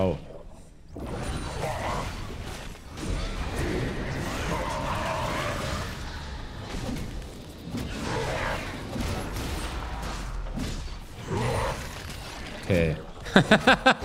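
Game battle effects clash, crackle and boom.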